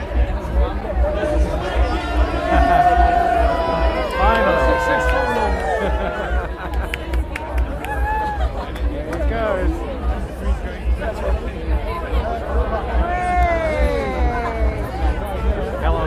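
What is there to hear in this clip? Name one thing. Young men and women in a crowd whoop and shout excitedly.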